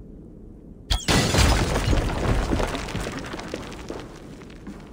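A fiery explosion bursts and then roars and crackles as it fades.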